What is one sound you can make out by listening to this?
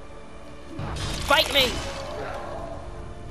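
An explosion bursts with a muffled boom.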